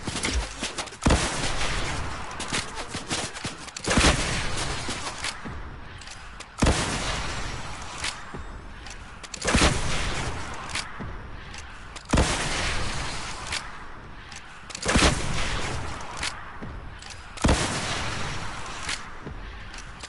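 A rocket launcher fires with a loud whoosh again and again.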